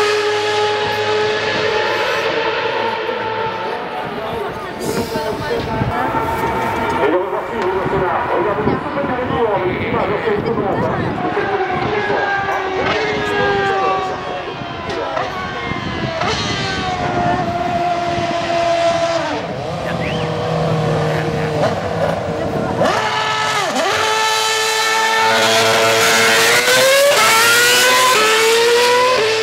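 Racing car engines scream at high revs, rising and falling as they shift gears.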